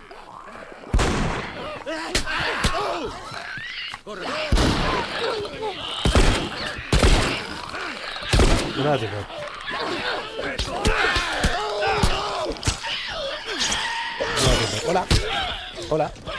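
Gunshots bang loudly and echo.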